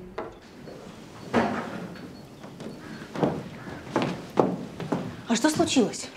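A young woman hurries down stairs with quick footsteps.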